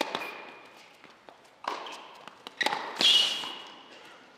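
A tennis ball is struck hard with a racket.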